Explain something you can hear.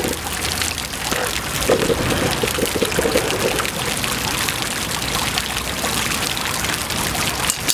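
Water splashes and patters steadily from small fountain jets onto wet stone.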